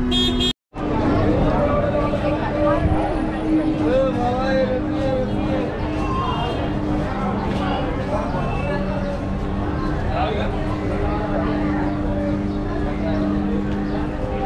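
Footsteps shuffle on pavement nearby.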